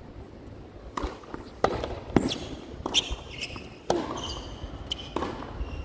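Tennis balls are struck sharply with rackets back and forth.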